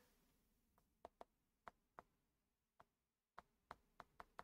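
A pen taps and clicks on a tablet.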